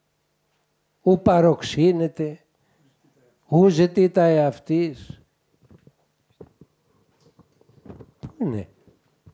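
An elderly man speaks calmly and expressively into a microphone, with pauses.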